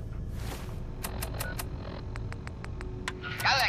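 Short electronic clicks tick in quick succession.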